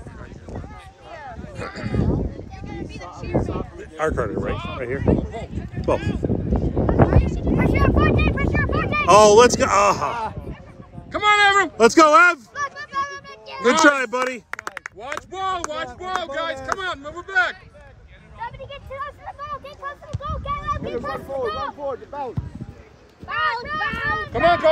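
Children shout and call out to each other across an open field.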